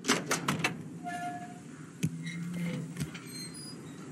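A metal door creaks open.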